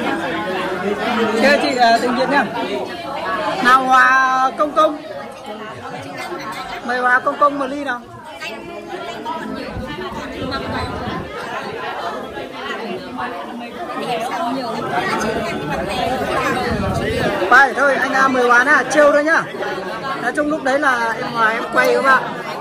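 A group of young men and women chat and laugh close by.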